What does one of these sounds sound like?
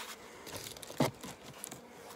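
A wooden frame knocks against a wooden box.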